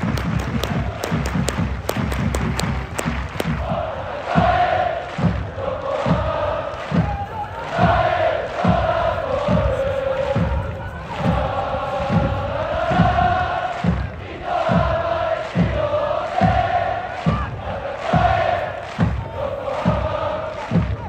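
A large stadium crowd claps in rhythm.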